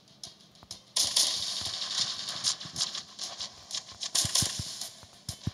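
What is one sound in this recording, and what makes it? A toy blaster fires in quick bursts.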